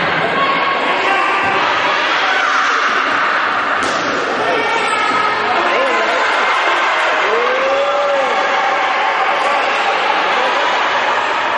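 Young girls call out to each other in a large echoing hall.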